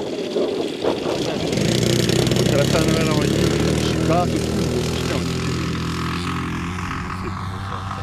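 A model airplane engine whines loudly as it speeds along the ground and takes off.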